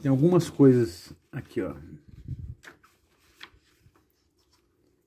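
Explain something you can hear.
Paper pages rustle and flip.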